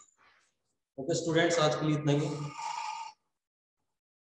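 A man speaks nearby, in a short burst between pauses.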